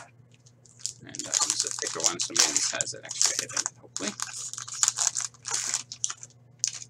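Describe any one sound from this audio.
A plastic wrapper crinkles and tears as it is ripped open.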